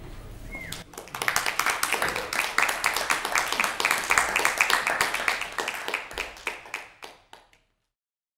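A group of people applauds loudly, then the clapping fades.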